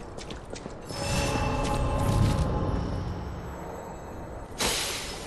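A deep magical whoosh swells and fades.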